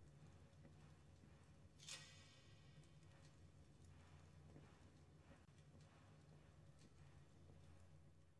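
A torch flame flickers and crackles softly.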